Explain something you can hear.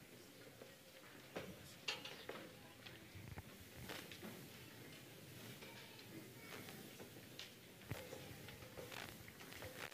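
An orchestra plays in a large hall.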